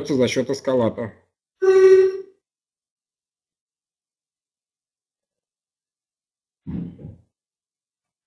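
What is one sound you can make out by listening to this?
A middle-aged man speaks calmly in short bursts over an online call, with pauses between.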